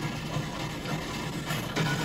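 A pickaxe clangs against a metal container.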